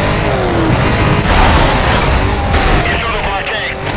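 A car crashes into a vehicle with a loud bang.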